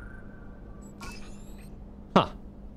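A puzzle panel gives a rising electronic chime.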